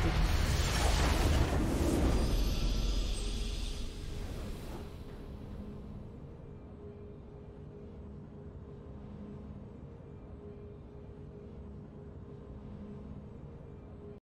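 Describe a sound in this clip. A triumphant game fanfare plays and settles into a soft, steady hum.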